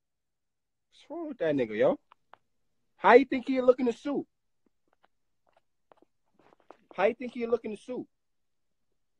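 A young man talks casually, close up through a phone microphone, in short bursts.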